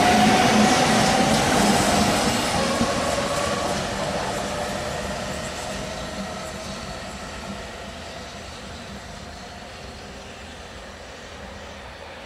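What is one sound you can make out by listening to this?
A double-deck electric train rolls past and fades into the distance.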